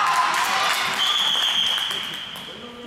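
A referee's whistle blows once, briefly.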